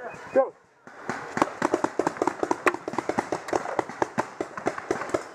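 A paintball marker fires rapid popping shots close by.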